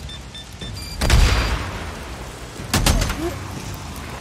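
A gun fires loud shots that echo outdoors.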